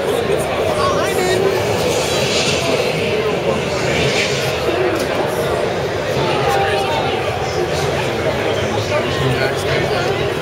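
A crowd murmurs and chatters all around in a large echoing hall.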